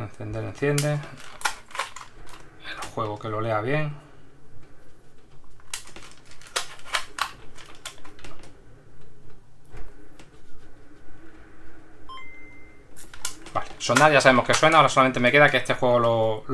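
A plastic case clicks and snaps as it is pressed together by hand.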